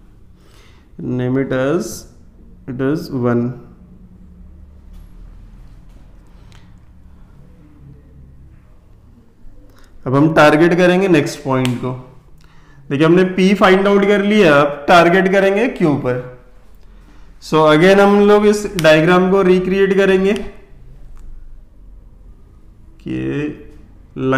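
A man speaks calmly and clearly, close by, in short bursts.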